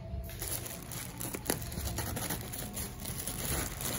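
Scissors snip through a plastic bag.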